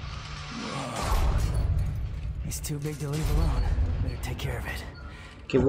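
A giant creature rumbles and crashes against a building.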